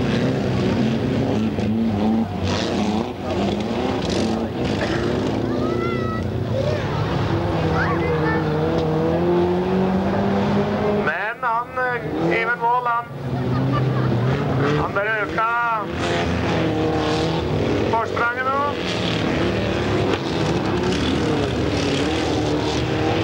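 Racing car engines roar and rev loudly.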